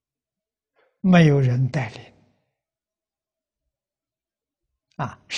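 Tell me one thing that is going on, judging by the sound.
An elderly man speaks calmly through a close microphone, in short phrases with pauses.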